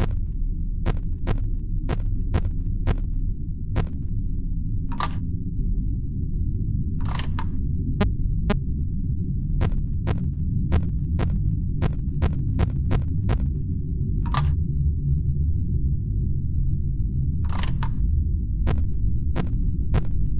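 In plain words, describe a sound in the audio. Static crackles and hisses steadily.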